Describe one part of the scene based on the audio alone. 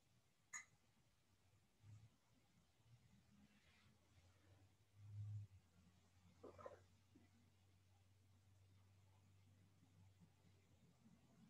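A woman sips a drink from a mug.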